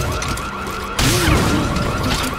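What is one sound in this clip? A suppressed gun fires once.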